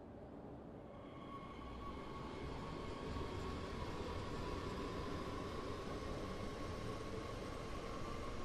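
A train's motor hums softly as the train starts to pull away.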